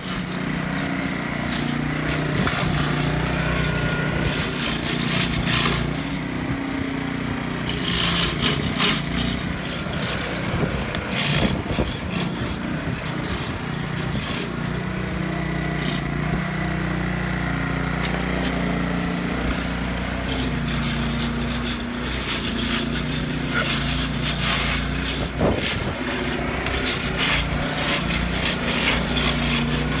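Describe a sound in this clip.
A petrol lawn mower engine runs steadily nearby.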